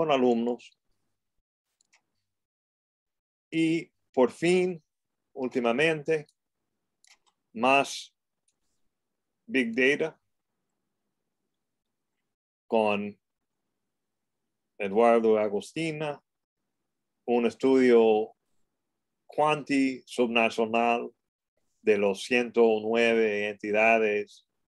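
A man lectures calmly through an online call microphone, pausing often.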